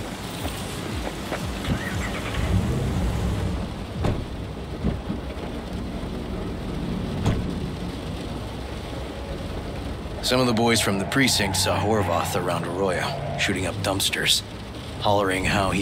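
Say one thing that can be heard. A car engine hums steadily at idle.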